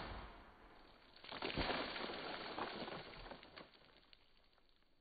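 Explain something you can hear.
Water sprays in a loud rushing splash outdoors.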